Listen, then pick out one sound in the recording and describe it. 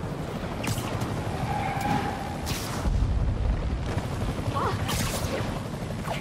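Air rushes past in quick whooshes as a figure swings and leaps.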